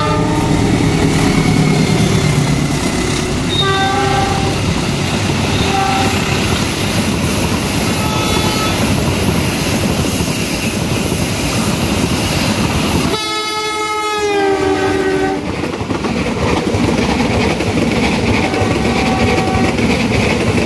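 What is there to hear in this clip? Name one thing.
Train wheels clatter and rumble steadily along the rails.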